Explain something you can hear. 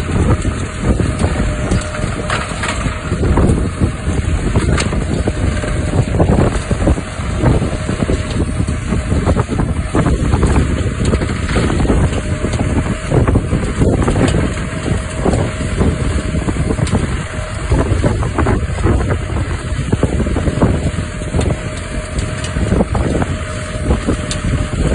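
A threshing machine roars and rattles.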